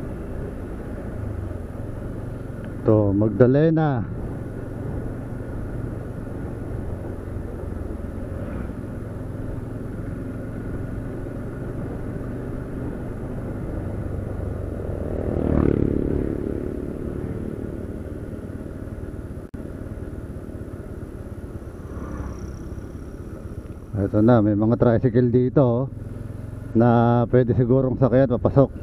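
A motorcycle engine hums steadily while riding along a road.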